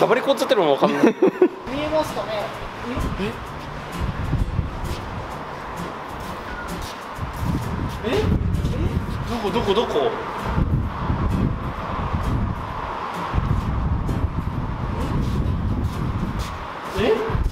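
A young man talks with animation close by.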